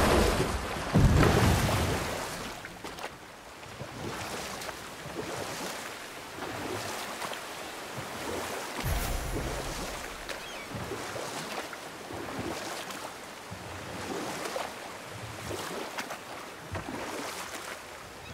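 Oars splash rhythmically in water as a boat is rowed.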